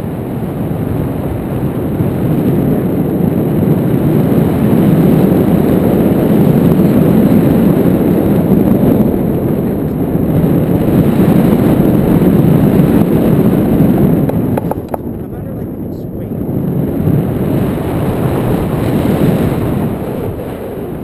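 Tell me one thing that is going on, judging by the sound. Wind rushes loudly past a microphone throughout, dropping briefly and then rising again.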